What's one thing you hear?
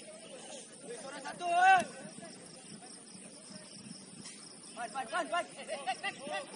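Young men shout to each other outdoors at a distance.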